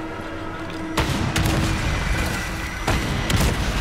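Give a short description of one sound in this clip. A grenade launcher fires with loud booms.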